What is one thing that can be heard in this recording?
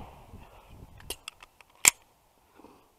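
A pistol's metal parts click as it is handled.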